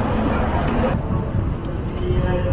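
Cars pass on a city street.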